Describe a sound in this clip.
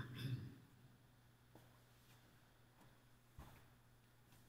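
Footsteps shuffle briefly on a hard floor.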